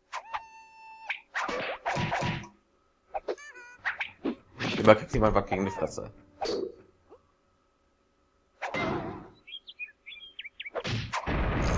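Wooden clubs thwack and clatter in a cartoon brawl.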